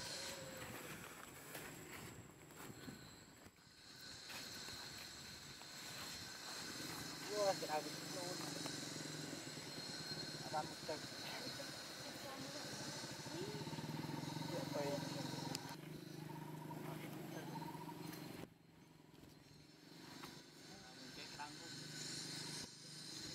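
A long-tailed macaque chews a banana.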